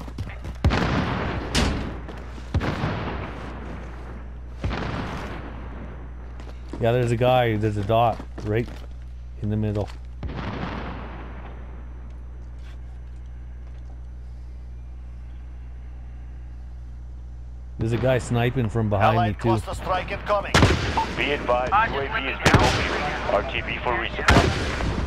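Gunshots crack and echo in bursts.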